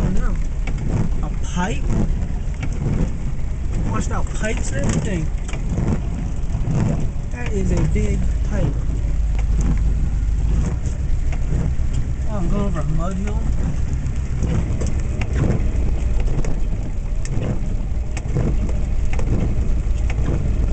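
A vehicle's engine rumbles steadily.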